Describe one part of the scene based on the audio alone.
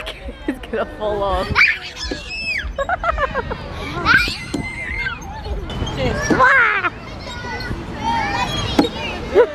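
Young children shout and squeal with excitement nearby.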